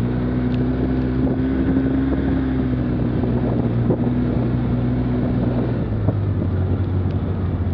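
A vehicle engine hums steadily close by.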